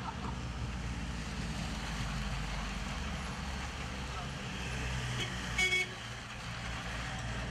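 A minibus drives past.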